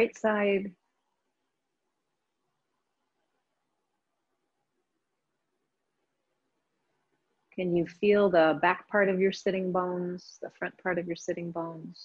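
A woman speaks calmly through a microphone, as on an online call.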